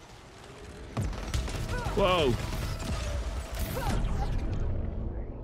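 Rapid energy weapons fire in bursts.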